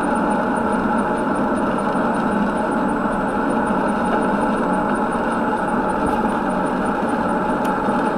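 A windscreen wiper sweeps across the glass.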